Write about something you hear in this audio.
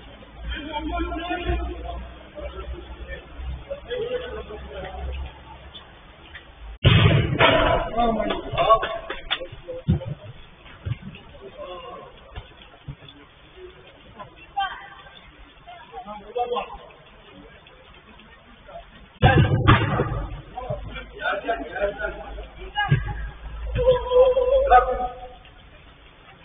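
Men shout and call out to each other at a distance.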